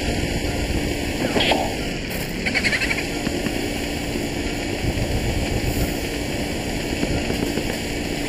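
A fire roars and crackles in a fireplace.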